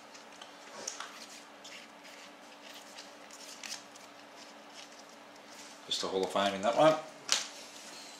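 Trading cards rustle and slide against each other.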